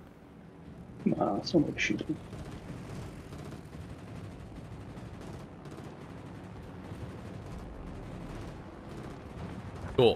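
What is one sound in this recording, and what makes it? A ship's engine rumbles low and steadily over churning water.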